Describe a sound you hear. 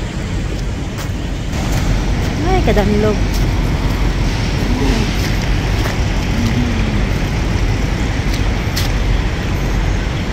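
Footsteps tread on wet, icy pavement.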